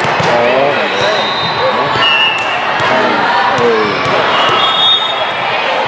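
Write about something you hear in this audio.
Sneakers squeak sharply on a court floor.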